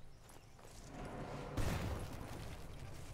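A submachine gun fires a loud burst of shots.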